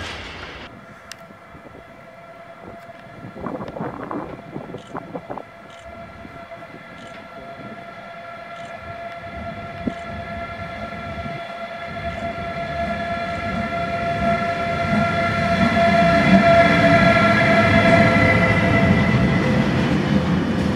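An electric locomotive hums with a steady high whine as it draws near.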